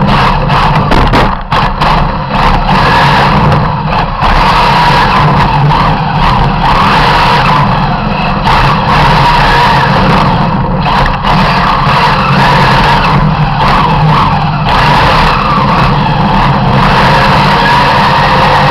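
Wind buffets loudly against the car.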